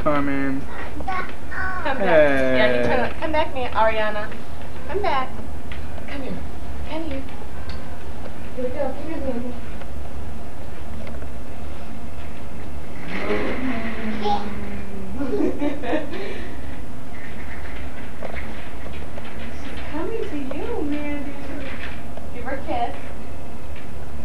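A woman talks playfully to a baby nearby.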